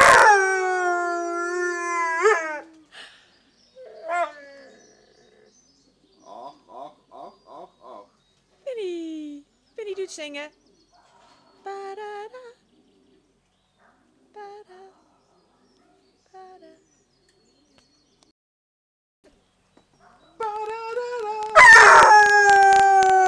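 A dog howls and whines in long, wavering cries.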